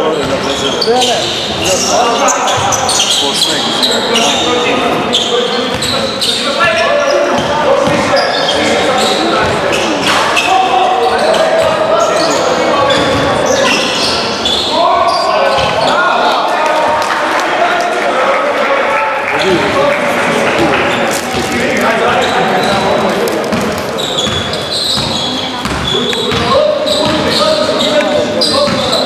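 Young men shout and call out to one another across the hall.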